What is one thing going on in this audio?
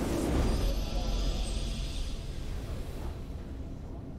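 A triumphant game fanfare rings out and fades.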